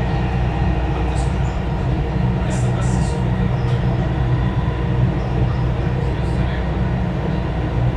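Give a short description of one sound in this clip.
A train hums steadily as it glides along a track.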